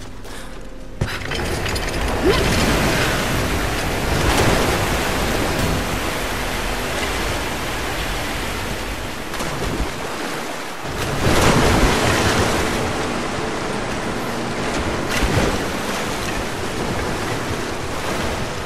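Water splashes and churns as someone swims.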